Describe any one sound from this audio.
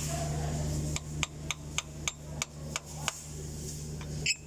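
Metal tools click and tap against an engine part.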